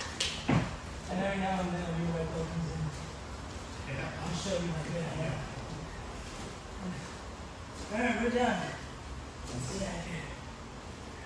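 A man speaks at a distance across a large room.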